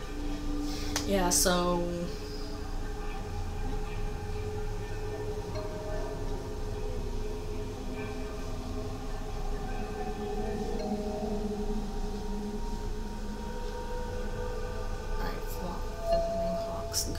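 A soft magical shimmer hums steadily.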